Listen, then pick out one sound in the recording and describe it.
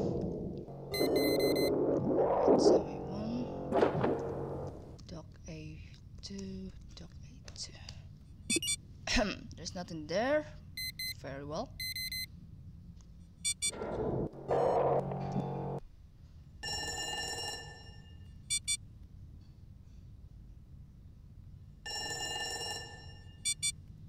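Electronic game beeps and chimes sound in short bursts.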